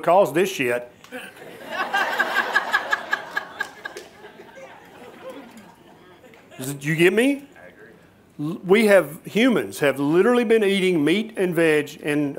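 A man speaks calmly to an audience through a microphone.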